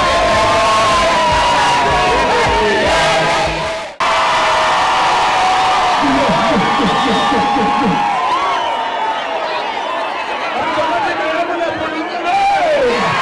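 A large crowd cheers, whistles and ululates loudly outdoors.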